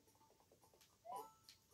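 A video game character jumps with a quick rising chirp.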